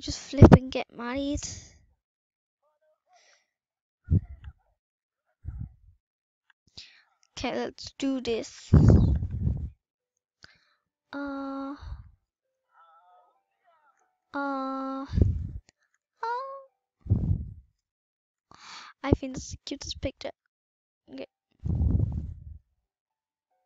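A young girl talks with animation into a close microphone.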